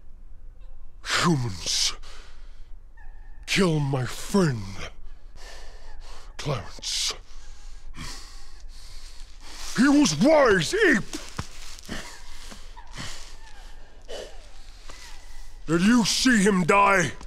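A man speaks slowly in a deep, gravelly voice, close by.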